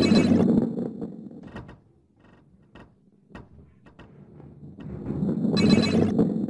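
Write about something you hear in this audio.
A heavy ball rumbles as it rolls along a wooden track.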